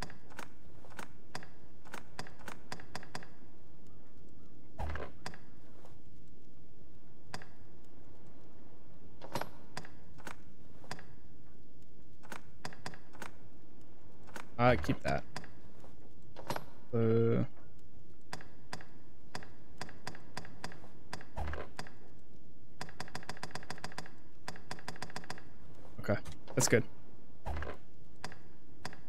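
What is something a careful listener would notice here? Soft menu clicks tick rapidly and repeatedly.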